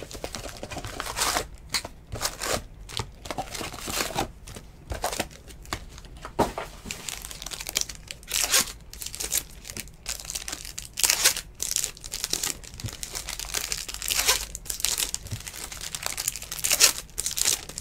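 Foil card wrappers crinkle and rustle as hands tear them open.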